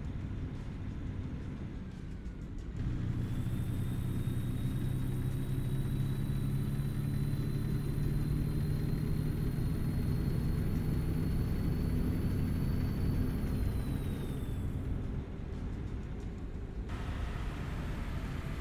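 Tyres roll on a highway.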